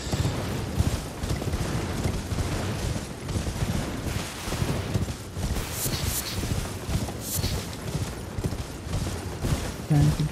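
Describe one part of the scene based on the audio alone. A young man talks steadily into a close microphone.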